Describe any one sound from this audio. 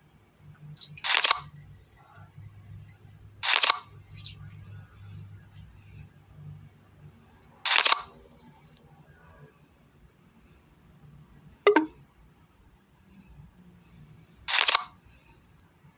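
Short card-sliding swishes sound now and then.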